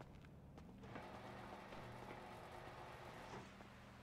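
A metal roller shutter door rattles open.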